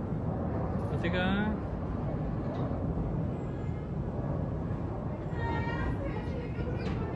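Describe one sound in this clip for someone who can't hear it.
A cat yowls sharply.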